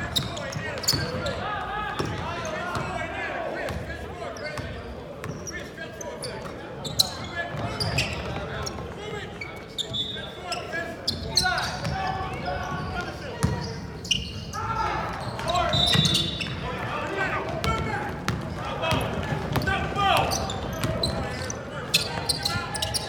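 Players and spectators call out and talk across the gym.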